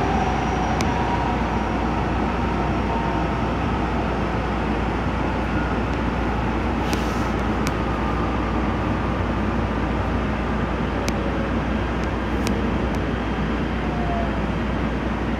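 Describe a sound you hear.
Train wheels squeal faintly on the rails.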